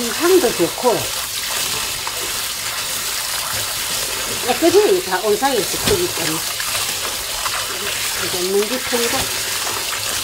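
Water runs from a tap and splashes into a bowl.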